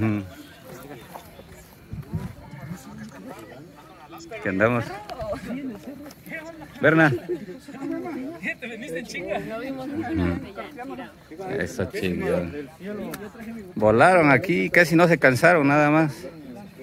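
Several young men and women talk and call out to each other close by outdoors.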